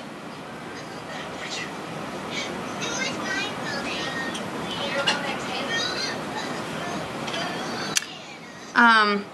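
A young woman whispers softly close to a microphone.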